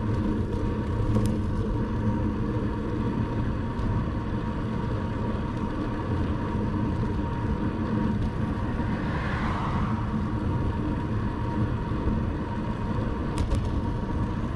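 Wind rushes steadily past while cycling.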